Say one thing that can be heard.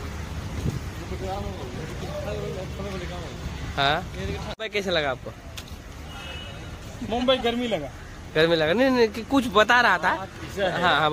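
Men talk with each other close by.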